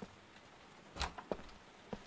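A door handle clicks as it is pressed.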